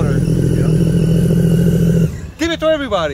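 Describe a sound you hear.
A jet ski engine hums nearby.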